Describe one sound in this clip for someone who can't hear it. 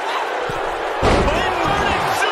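A body slams heavily onto a wrestling mat with a deep thud.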